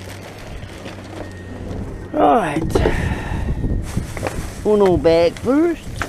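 Plastic trash bags rustle as they are moved.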